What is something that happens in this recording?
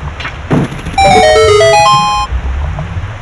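A short bright jingle of rising chime notes plays.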